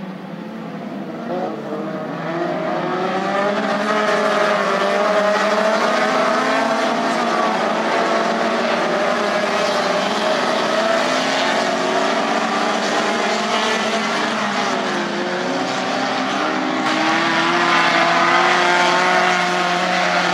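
Car tyres skid and crunch over loose dirt.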